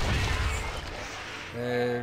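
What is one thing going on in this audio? A magic blast whooshes loudly.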